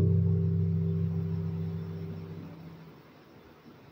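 A guitar chord rings out and slowly fades.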